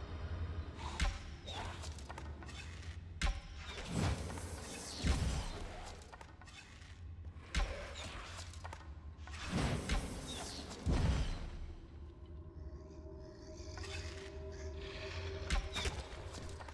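A bowstring twangs sharply as arrows are shot, again and again.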